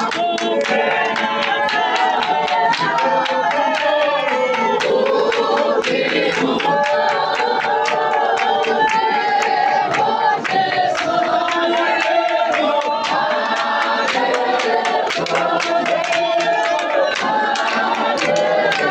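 A crowd claps hands in a steady rhythm.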